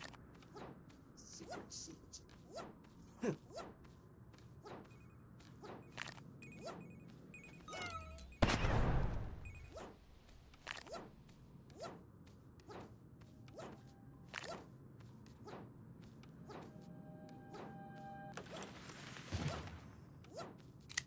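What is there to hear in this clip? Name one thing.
Short electronic blasts and zaps from a video game pop again and again.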